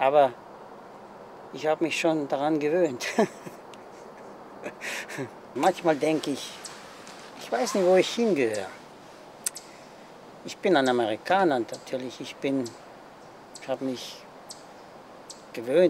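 An elderly man speaks calmly and close, in short phrases with pauses.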